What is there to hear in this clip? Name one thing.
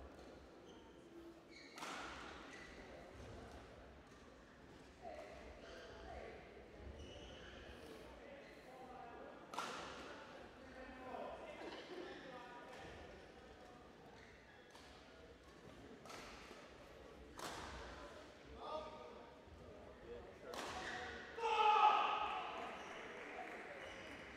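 Sneakers squeak on a court floor.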